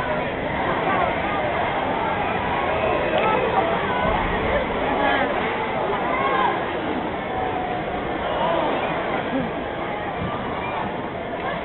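A large crowd cheers and chatters loudly in an echoing arena.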